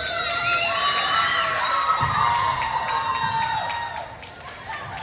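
Young women shout and cheer in a large echoing gym.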